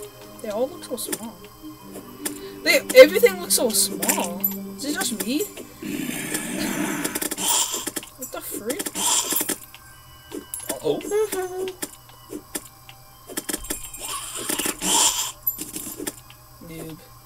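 Short digging and pickup sound effects from a video game play through computer speakers.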